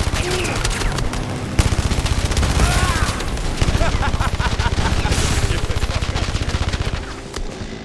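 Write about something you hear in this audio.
A heavy machine gun fires rapid bursts close by.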